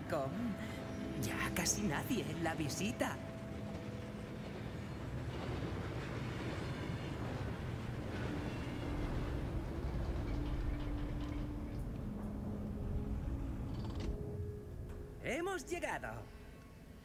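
A cart rumbles and clatters along metal rails.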